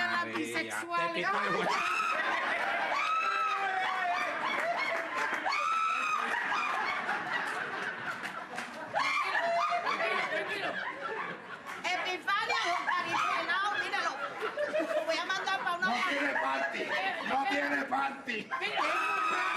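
An audience laughs throughout.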